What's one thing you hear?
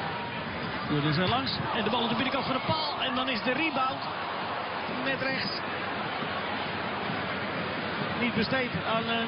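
A stadium crowd roars and cheers loudly.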